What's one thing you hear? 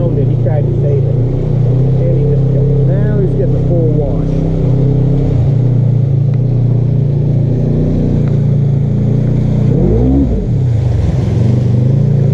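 Water splashes and sloshes under tyres driving through a muddy puddle.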